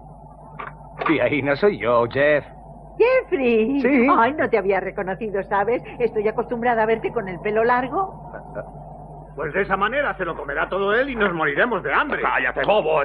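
An elderly woman speaks animatedly.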